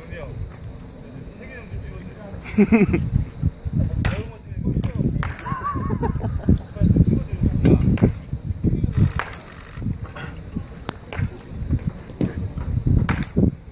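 A bat cracks against a baseball, again and again.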